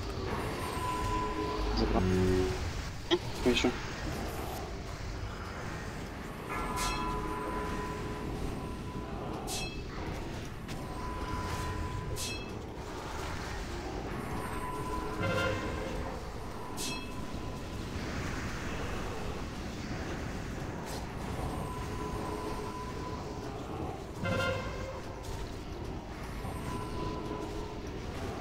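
Spells whoosh, crackle and chime in a battle.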